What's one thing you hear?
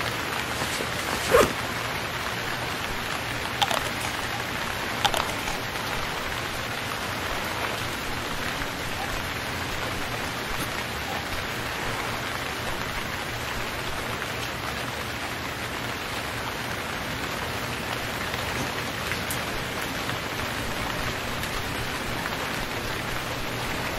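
Waves wash gently against a shore.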